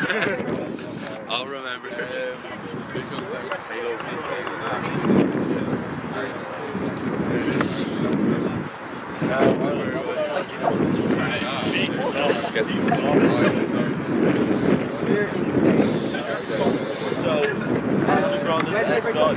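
A young man talks loudly to a team, outdoors.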